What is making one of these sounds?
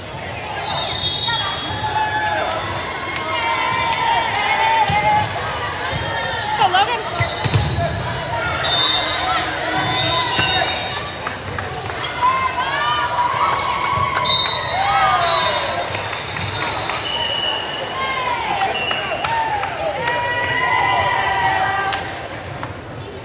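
Young girls shout and cheer in a large echoing gym.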